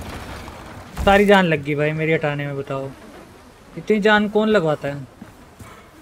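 A man talks with animation into a microphone, close up.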